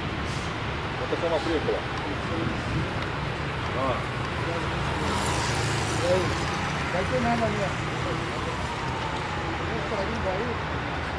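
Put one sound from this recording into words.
A man speaks close by in short bursts.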